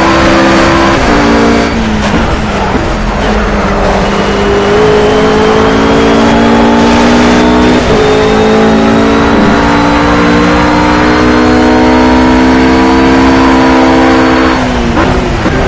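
A GT3 race car engine shifts gears, its pitch dropping sharply.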